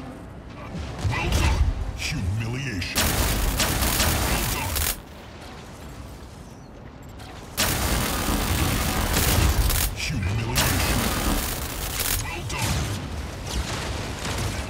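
Energy weapons fire in rapid bursts with loud blasts.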